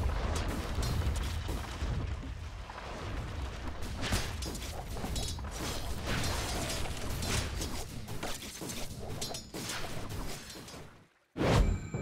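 Blows clash and spells burst in a fast video game battle.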